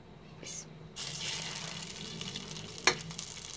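Meat sizzles as it fries in a hot pan.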